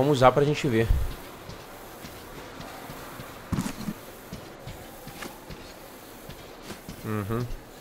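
A young man talks into a nearby microphone in short bursts.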